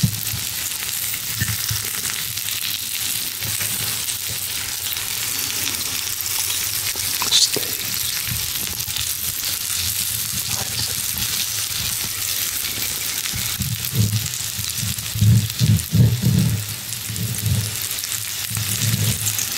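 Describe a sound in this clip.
A knife scrapes on a plate while cutting meat.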